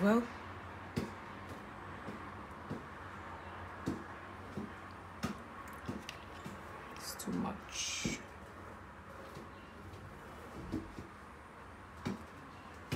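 A glass bottle clinks and taps against a hard surface.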